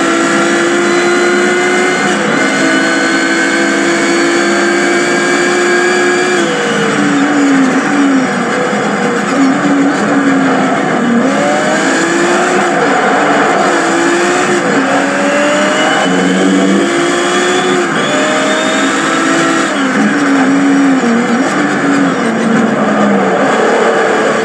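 A racing car engine roars and revs up and down through gear changes from a television speaker.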